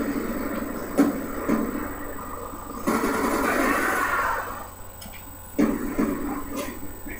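Gunfire cracks in bursts from a television speaker.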